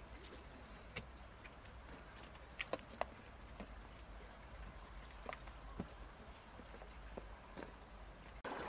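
Footsteps scrape and crunch on rocks and gravel.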